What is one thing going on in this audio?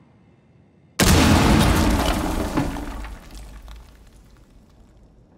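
An explosion blasts through a wall with a loud boom and falling debris.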